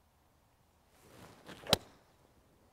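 A golf club swishes through the air.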